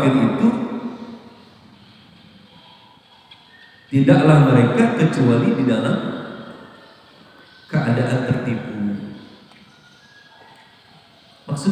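A man speaks through a microphone in bursts, with pauses between phrases, in a room with echo.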